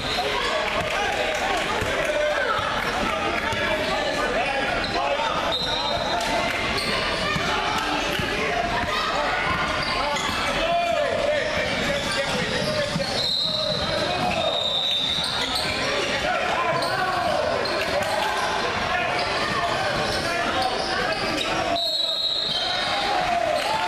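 A crowd of spectators chatters and cheers throughout, echoing in a large hall.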